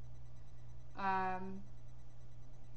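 A young woman says a short drawn-out word close by.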